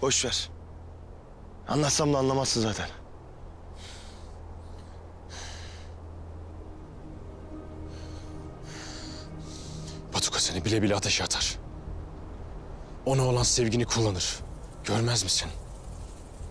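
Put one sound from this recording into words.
A young man speaks calmly, close by, in short phrases with pauses.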